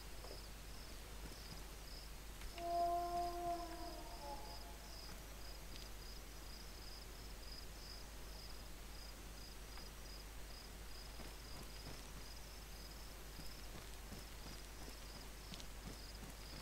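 Footsteps crunch softly on the ground.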